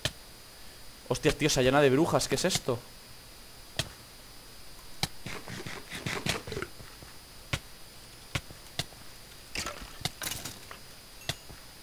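Footsteps patter on grass and dirt.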